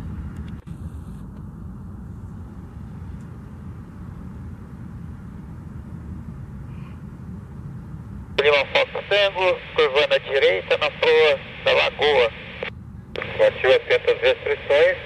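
A propeller plane's engine drones overhead in the distance.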